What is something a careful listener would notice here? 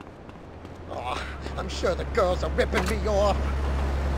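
A man shouts during a scuffle.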